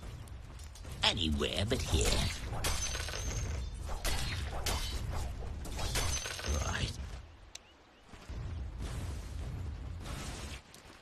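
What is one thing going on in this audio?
Game combat effects clash and crackle.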